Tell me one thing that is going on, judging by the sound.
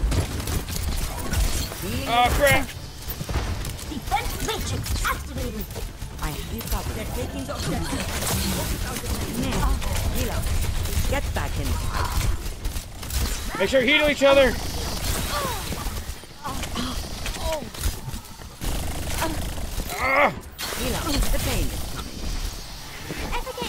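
Rifle shots fire rapidly.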